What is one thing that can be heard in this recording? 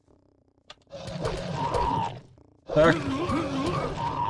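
A creature growls and snarls.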